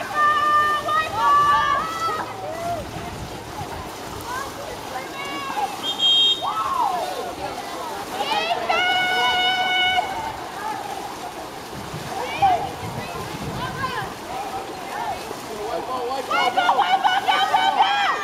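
A crowd of spectators shouts and cheers outdoors.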